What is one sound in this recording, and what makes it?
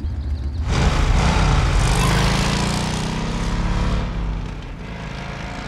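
A motorcycle engine rumbles.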